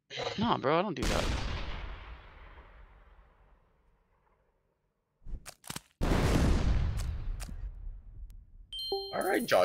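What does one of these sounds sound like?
Explosions boom in a game and slowly fade.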